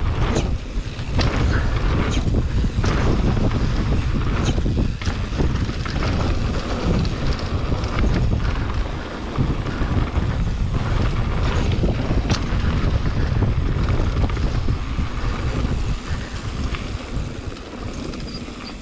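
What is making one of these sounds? Wind rushes and buffets loudly past the rider.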